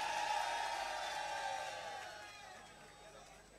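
A large crowd chants loudly outdoors.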